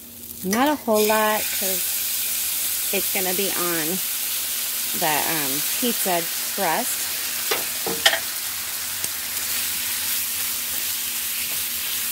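Sauce sizzles and hisses in a hot pan.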